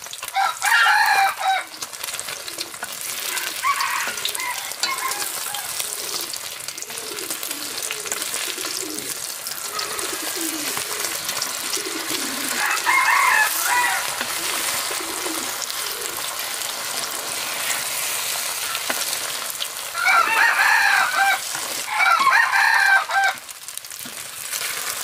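Egg sizzles and crackles in hot oil.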